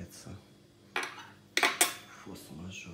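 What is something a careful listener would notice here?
A fork clinks against a hard surface.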